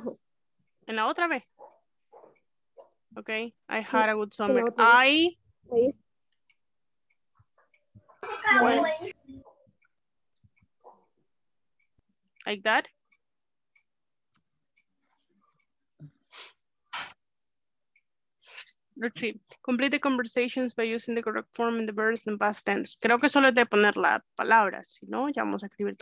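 A woman speaks over an online call, explaining with animation.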